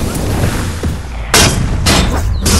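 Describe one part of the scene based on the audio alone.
A heavy slam thuds into the ground.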